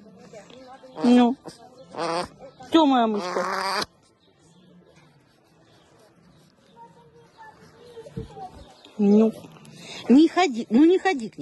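A woman speaks playfully close by.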